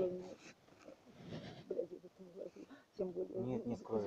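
Clothing rustles and brushes close against the microphone.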